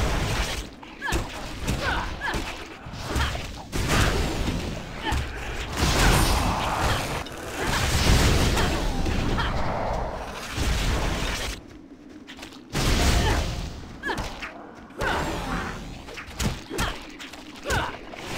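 Monsters grunt and shriek as they are struck.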